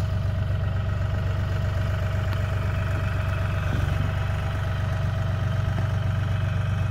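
A tractor engine idles with a steady low rumble close by.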